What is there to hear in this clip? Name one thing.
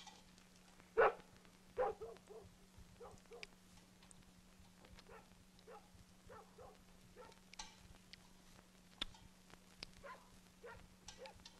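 A spoon clinks against a small metal bowl.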